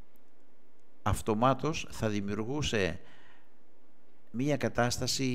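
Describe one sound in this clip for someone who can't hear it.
An older man speaks calmly and close to a microphone, in short bursts with pauses.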